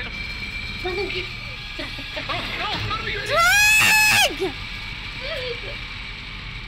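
A young woman talks and squeals excitedly into a microphone, close up.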